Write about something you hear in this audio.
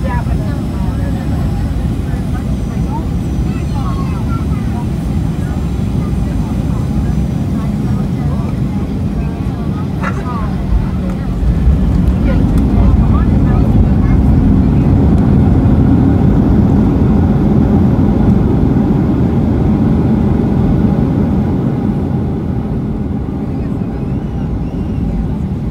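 Tyres rumble on a runway as an airliner rolls fast.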